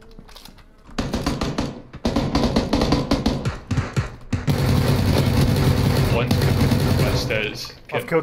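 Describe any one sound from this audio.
A submachine gun fires rapid bursts indoors.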